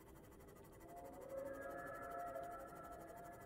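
An electronic signal tone chimes.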